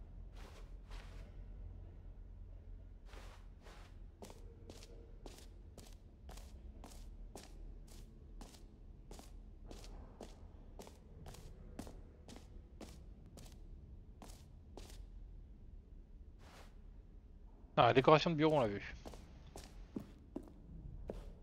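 Footsteps tap steadily on a hard floor in a large echoing hall.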